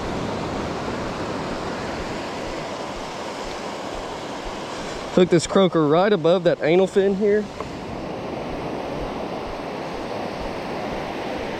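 Small waves wash steadily onto a beach.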